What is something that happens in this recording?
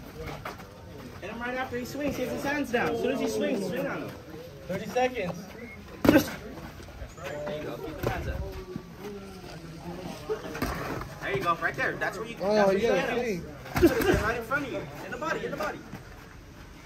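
Young men talk and shout nearby outdoors.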